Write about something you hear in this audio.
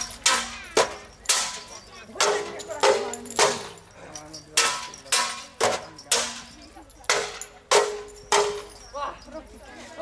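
Swords clash with sharp metallic clangs.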